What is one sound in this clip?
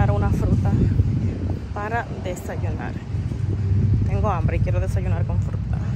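Women chat nearby outdoors.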